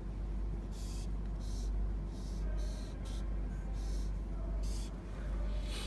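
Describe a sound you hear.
A felt-tip marker squeaks and scratches across paper in short strokes.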